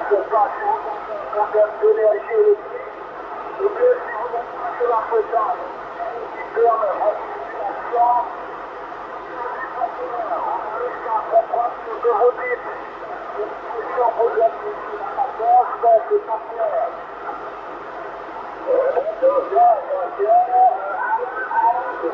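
A radio tuning knob clicks as it turns.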